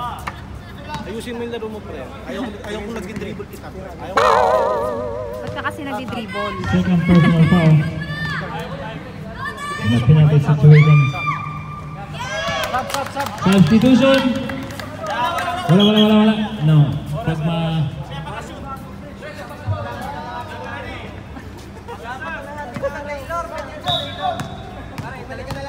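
Men talk and shout with animation close by, outdoors.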